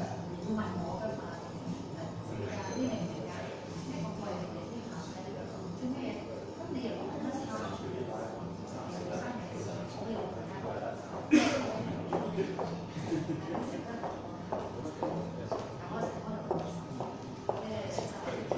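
A woman speaks softly nearby in an echoing room.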